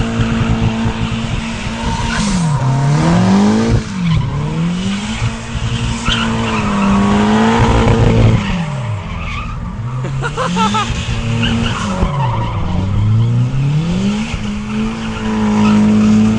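A car engine revs hard, rising and falling again and again.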